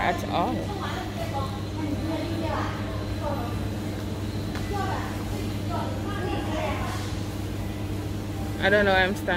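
A young woman talks quietly, close to the microphone.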